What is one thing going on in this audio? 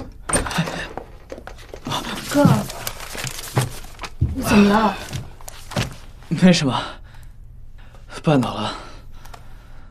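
A young man speaks with concern, close by.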